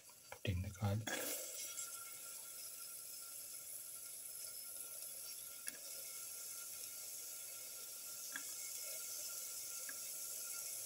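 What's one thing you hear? Garlic sizzles steadily in hot oil.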